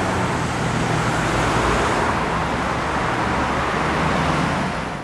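A tram rolls slowly into a station, its wheels rumbling on the rails.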